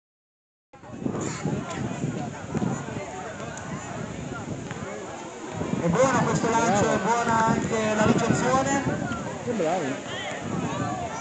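Children and adults chatter and shout outdoors.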